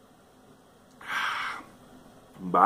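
A man lets out a loud, breathy sigh after drinking.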